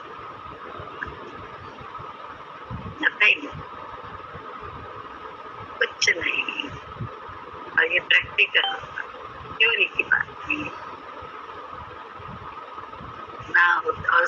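An elderly woman laughs softly over an online call.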